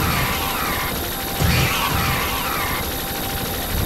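Energy blasts whoosh with falling, crackling tones.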